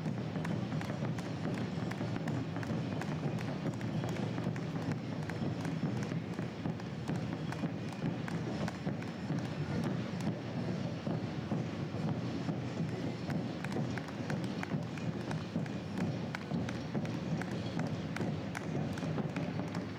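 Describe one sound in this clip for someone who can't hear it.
Running shoes patter on asphalt as runners pass close by.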